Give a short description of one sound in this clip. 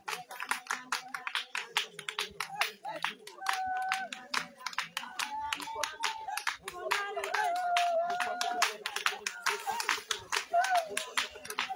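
A group of people sing together outdoors nearby.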